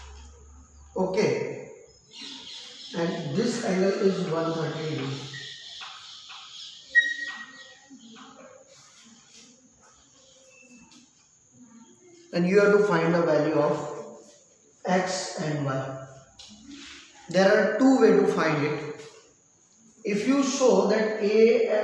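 A man speaks calmly and clearly, like a teacher explaining, close to a microphone.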